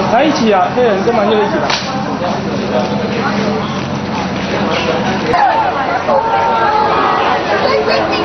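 A crowd chatters noisily nearby.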